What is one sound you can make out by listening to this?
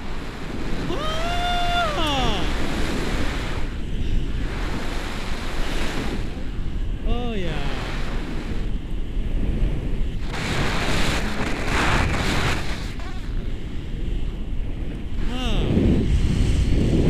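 A woman cries out excitedly close to the microphone.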